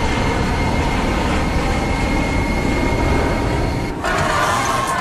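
A jet airliner's engines roar steadily overhead.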